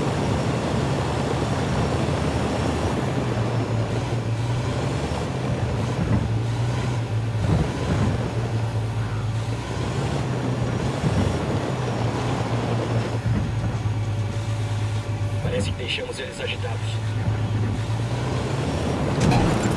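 Heavy tyres crunch over gravel.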